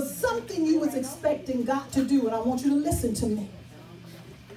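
A woman speaks with animation through a microphone and loudspeakers.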